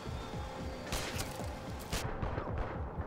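A rifle fires a quick burst of gunshots.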